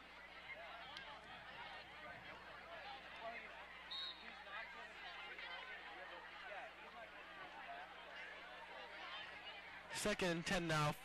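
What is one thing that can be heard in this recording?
A crowd murmurs and cheers in outdoor stands.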